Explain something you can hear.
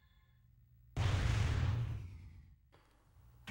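A large robot's machinery whooshes and hums as it moves.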